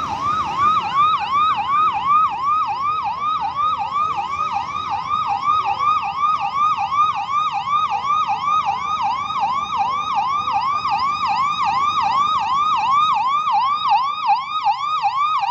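A car engine hums as a vehicle drives slowly past close by.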